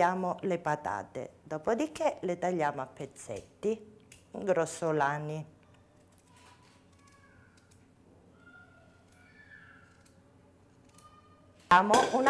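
A knife scrapes as a potato is peeled.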